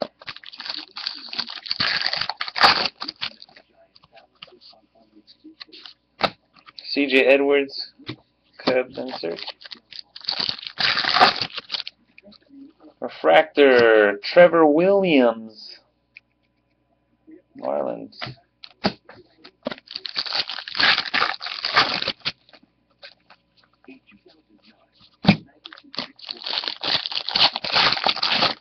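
Foil packs crinkle and tear open.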